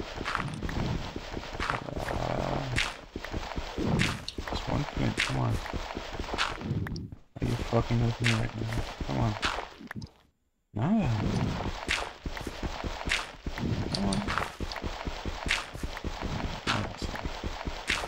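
Stone blocks crack and crumble with quick repeated taps.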